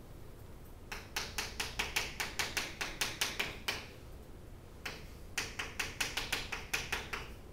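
Chalk taps and scrapes rapidly on a blackboard.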